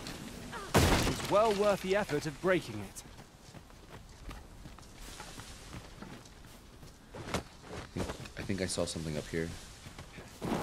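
A young man talks calmly into a close microphone.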